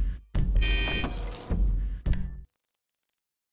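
A van door is pulled open with a heavy clunk.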